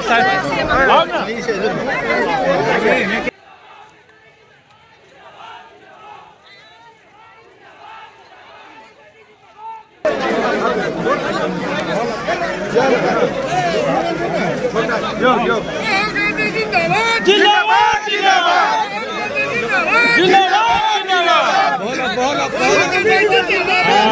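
A dense crowd of men and women talks and calls out close by, outdoors.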